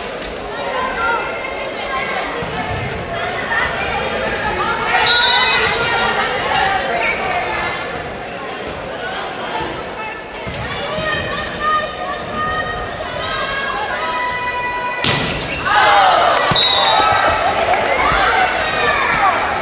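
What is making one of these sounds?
Young women call out to each other across an echoing gym.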